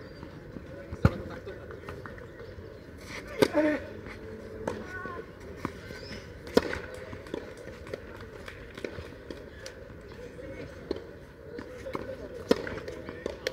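Tennis balls are struck with rackets, with sharp pops outdoors.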